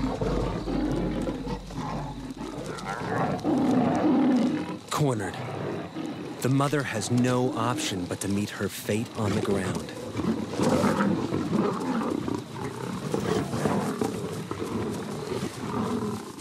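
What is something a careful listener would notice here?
Lions growl and snarl close by.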